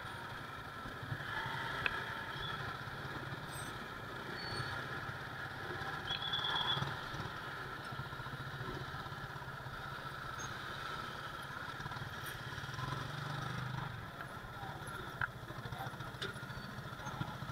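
Other motorcycle engines run nearby in slow traffic.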